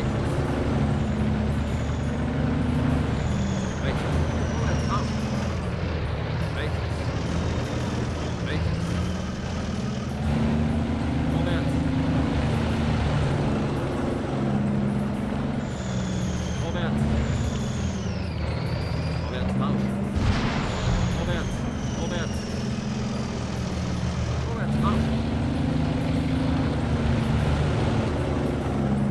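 Tank tracks clank and squeal as the tank rolls over the ground.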